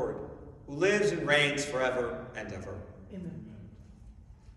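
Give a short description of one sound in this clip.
An elderly man sings a chant through a microphone in an echoing room.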